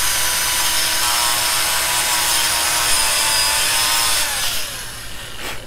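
A small motor whines loudly, then winds down and stops.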